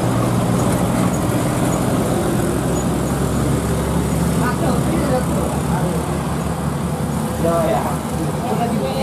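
A truck engine rumbles low as it climbs a hill.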